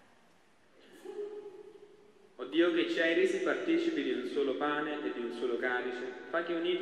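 A man chants into a microphone, echoing through a large hall.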